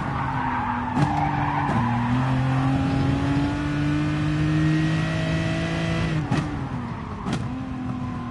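Gear shifts click sharply as the engine changes pitch.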